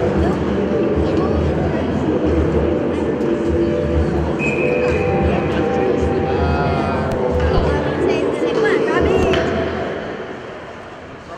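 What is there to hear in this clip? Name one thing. A crowd murmurs and calls out in a large echoing rink.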